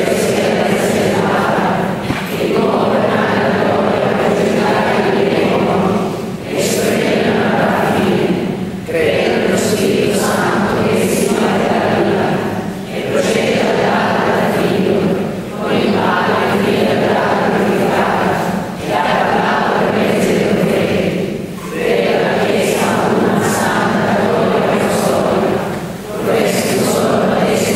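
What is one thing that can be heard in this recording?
A middle-aged man speaks steadily through a microphone, with phrases broken by short pauses, in a large echoing hall.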